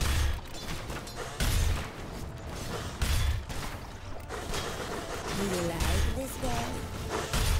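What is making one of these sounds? Game spells and weapon strikes clash in a fantasy battle.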